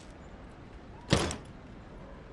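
A heavy metal lid slams shut on a case.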